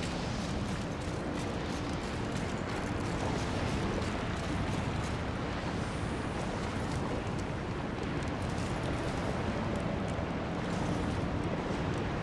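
Molten lava rumbles with a steady, deep roar.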